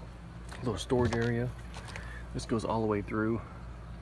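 A storage hatch latch clicks and the hatch swings open.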